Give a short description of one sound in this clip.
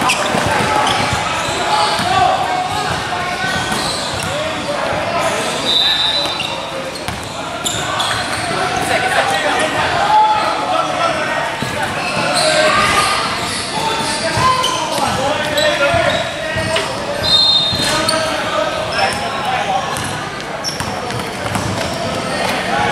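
Boys shout to each other in an echoing gym.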